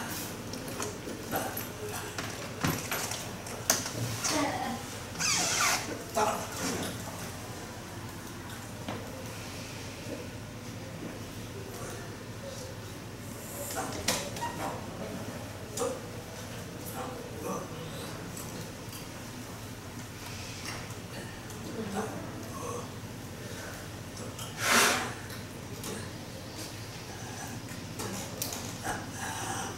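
A woman makes soft breaths and mouth sounds close by.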